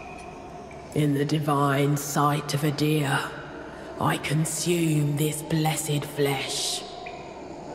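A man speaks slowly in a deep, solemn voice.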